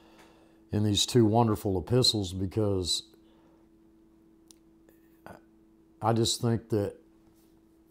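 An elderly man speaks slowly and calmly close to a microphone, with pauses.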